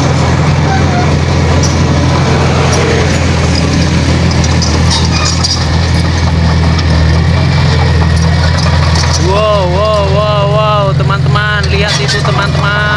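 Metal tracks of a bulldozer clank and squeak as it moves.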